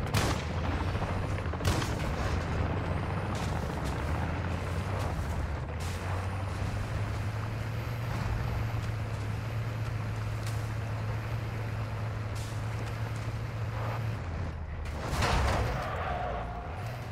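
A heavy truck engine rumbles steadily as the truck drives over rough ground.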